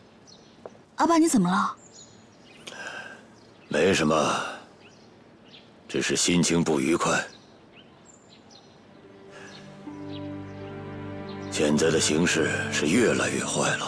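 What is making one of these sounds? A middle-aged man speaks in a low, troubled voice.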